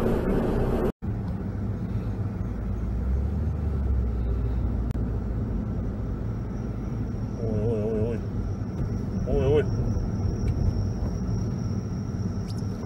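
Road noise hums inside a moving car.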